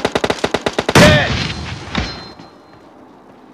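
A grenade explodes with a loud boom that rumbles away.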